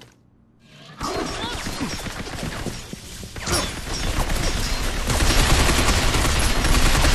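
Rapid gunfire rattles and echoes.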